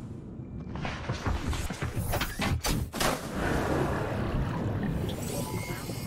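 Water splashes and bubbles as a small submarine drops into a pool.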